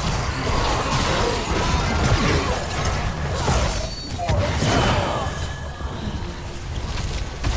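Magic blasts and battle effects crackle and boom in a game fight.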